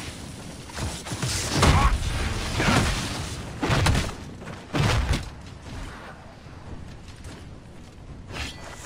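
Weapons clash and strike in combat.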